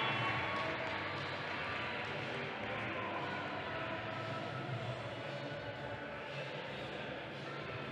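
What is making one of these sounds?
Wheelchair wheels roll and squeak on a court floor.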